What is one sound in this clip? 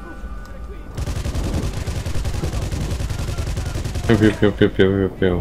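A machine gun fires in rapid, rattling bursts.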